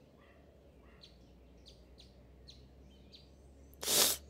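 A small cartoonish voice gives a string of short, quick gasps.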